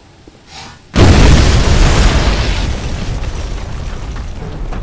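A loud explosion booms and crackles, then rumbles away.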